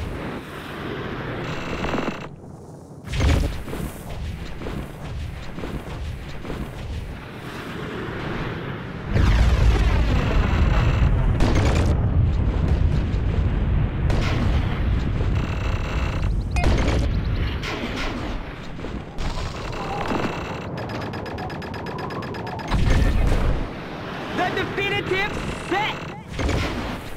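A snowboard rushes and scrapes over snow.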